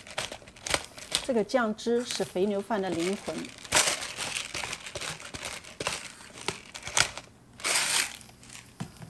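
A pepper grinder grinds with a dry, gritty crackle.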